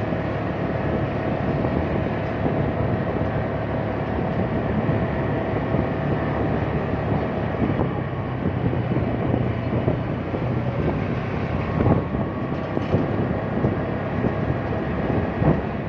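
Wind rushes past over the engine noise.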